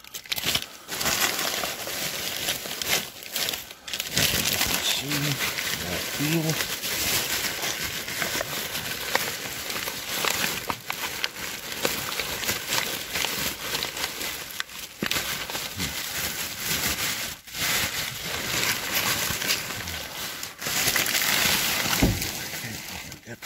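Plastic bags and wrappers rustle and crinkle as rubbish is rummaged through.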